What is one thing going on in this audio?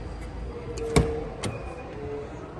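A car door unlatches with a sharp click and swings open.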